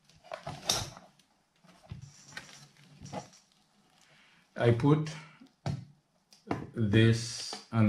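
A thin metal cover rattles and scrapes as it is lifted off and set aside.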